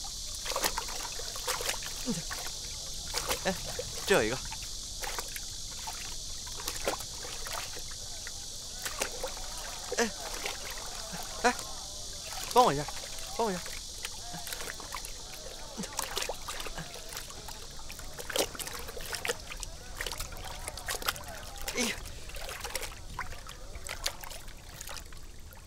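Water splashes as people wade through a muddy pond.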